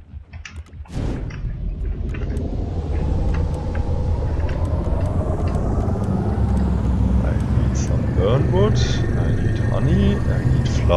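Jet thrusters roar loudly and steadily.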